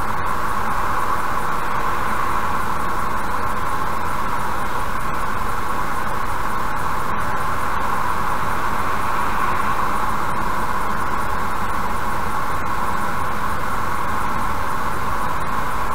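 A car drives steadily at speed with a constant road and engine hum.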